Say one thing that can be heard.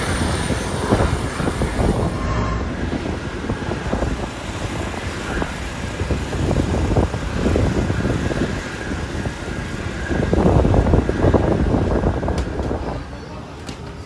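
Wind gusts across open ground outdoors.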